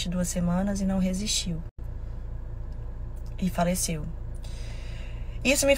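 A young woman speaks casually and close up, in short bursts with pauses.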